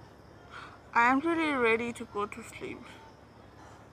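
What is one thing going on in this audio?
A young woman cries out in distress.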